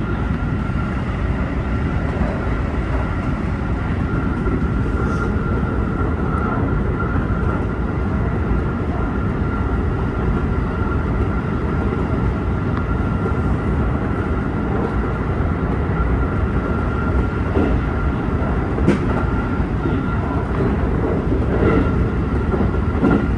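A train's motor whines with a steady high hum.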